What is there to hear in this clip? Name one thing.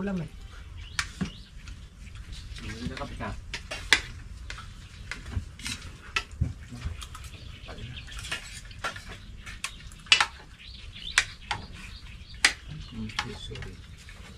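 Spoons and utensils clink against plates and pots.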